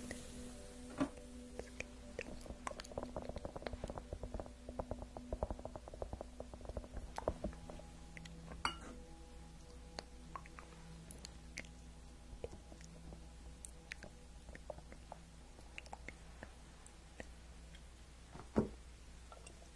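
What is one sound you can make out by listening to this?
Ceramic cups tap and clink.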